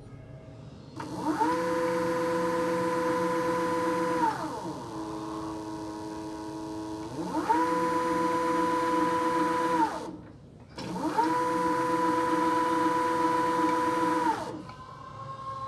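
An electric motor whines up to speed, holds a steady high hum, then winds down, several times.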